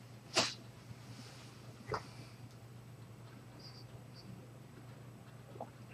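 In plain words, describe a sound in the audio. A man blows short, sharp puffs of breath close by.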